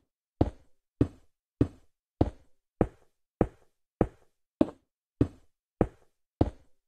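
Stone blocks thud into place in a quick, even rhythm.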